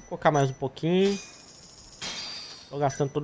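Short electronic menu chimes ring.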